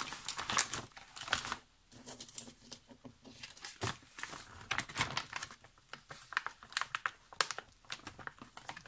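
Paper and plastic sleeves rustle and crinkle close by.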